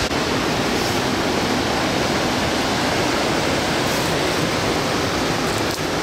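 A river rushes over rocks.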